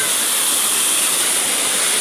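Water splashes down steadily from a waterfall close by.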